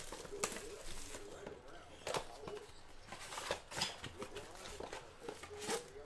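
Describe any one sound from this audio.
Plastic wrap crinkles and tears as it is pulled off a box.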